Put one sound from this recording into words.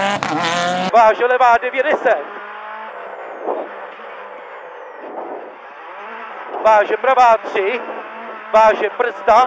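A rally car engine revs and drones heard from inside the car.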